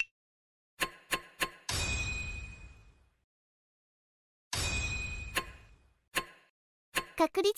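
Short electronic chimes ring out.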